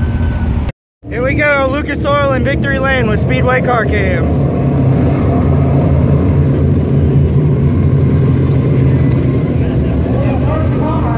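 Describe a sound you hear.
Race cars rumble around a dirt track in the distance.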